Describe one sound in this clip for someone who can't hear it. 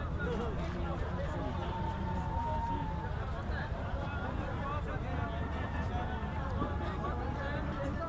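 A crowd of men and women chatter loudly all around.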